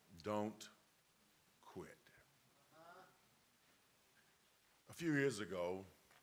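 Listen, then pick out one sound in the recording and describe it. A man preaches through a microphone with strong, drawn-out emphasis, in a large echoing hall.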